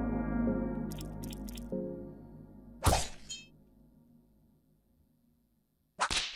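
Eerie game music plays and fades away.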